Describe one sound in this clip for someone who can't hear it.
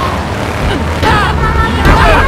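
A car strikes a pedestrian with a thud.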